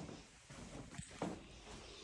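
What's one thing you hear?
Footsteps thud softly on carpeted stairs.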